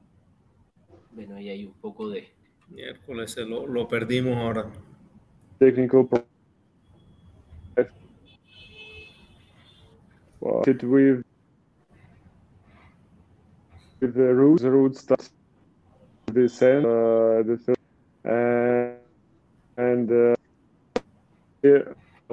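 A man speaks with animation over an online call, heard through a microphone.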